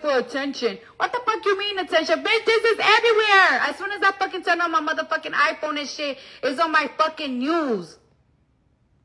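A young woman sings into a microphone, close and amplified.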